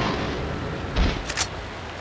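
A short click sounds as an item is picked up.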